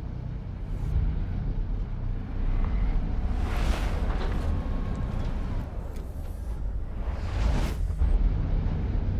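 A deep, steady rumble drones throughout.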